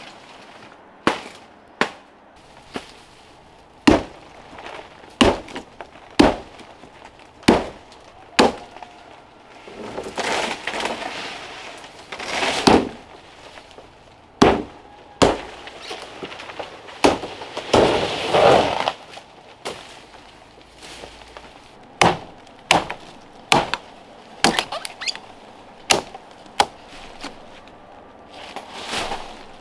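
A knife chops sharply into a palm trunk, blow after blow.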